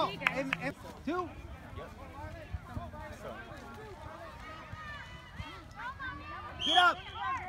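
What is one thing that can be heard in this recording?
Boys shout and call out to each other across an open field outdoors.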